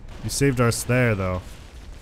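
A plasma grenade explodes with a bang.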